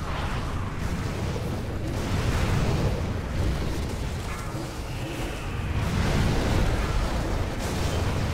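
Magic spells crackle and burst in a fast battle.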